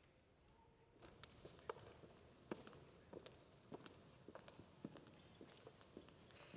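Footsteps knock on a wooden stage.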